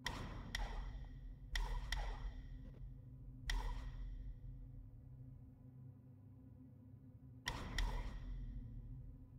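Short bright game menu chimes ring out now and then, each fading with a shimmer.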